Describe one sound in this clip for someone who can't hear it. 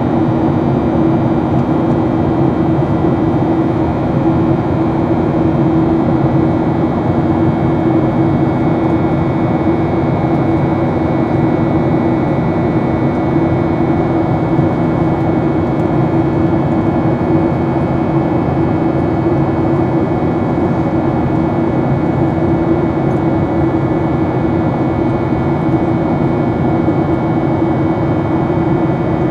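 A jet engine roars steadily, heard from inside an aircraft cabin.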